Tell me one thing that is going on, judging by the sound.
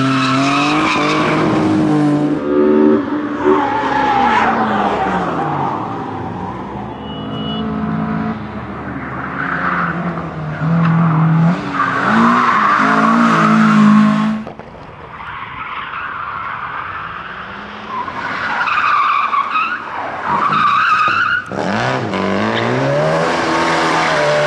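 Rally car engines roar and rev hard close by.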